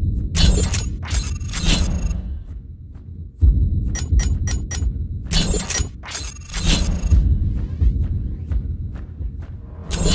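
Swooshing electronic whooshes sweep past.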